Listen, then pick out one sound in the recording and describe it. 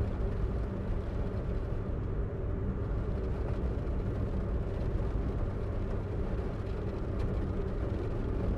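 A car engine hums steadily at speed.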